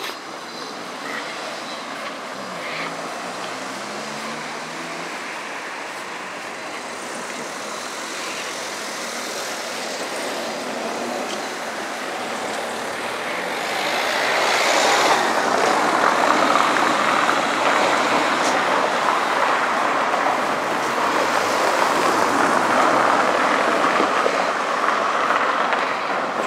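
Tyres rumble steadily over a cobbled street, growing louder partway through.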